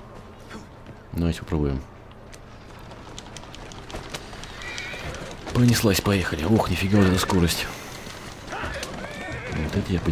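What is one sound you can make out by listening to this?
A horse-drawn carriage rolls over cobblestones.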